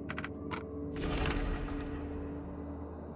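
A page sweeps open with a papery whoosh.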